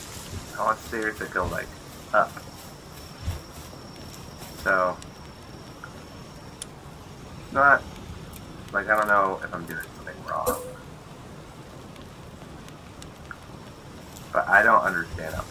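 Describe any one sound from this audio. A young man talks casually into a microphone in short bursts.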